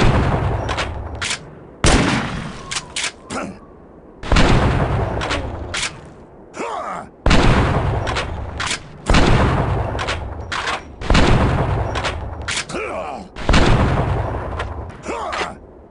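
A shotgun fires loud booming blasts that echo and fade.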